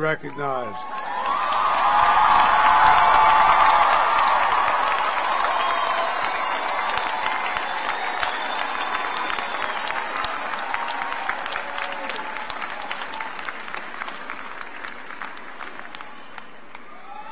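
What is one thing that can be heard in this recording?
A large crowd applauds loudly.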